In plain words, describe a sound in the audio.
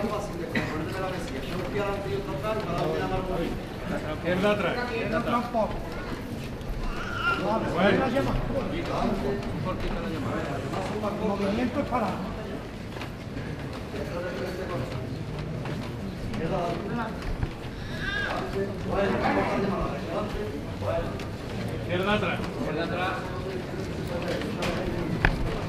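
A large crowd murmurs and chatters nearby outdoors.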